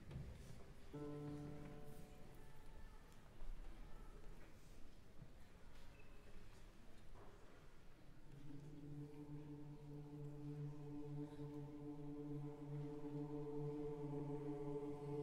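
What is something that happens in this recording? A choir sings soft, steady held chords.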